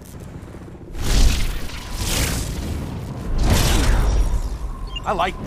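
Thunder rumbles deeply.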